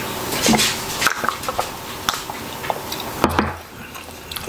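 A man slurps a drink up close.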